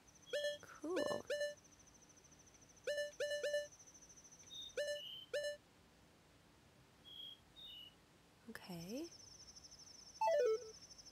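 Short electronic menu chimes beep in quick bursts.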